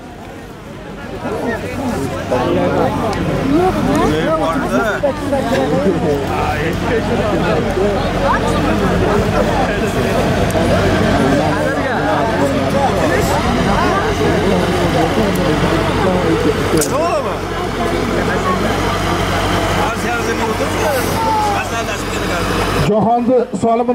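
A large crowd of men shouts and calls out outdoors.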